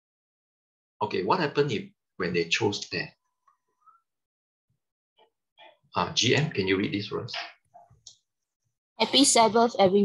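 A man reads aloud, heard through an online call.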